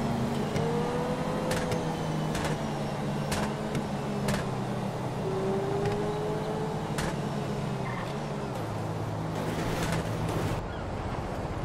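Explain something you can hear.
A sports car engine hums steadily as the car speeds along.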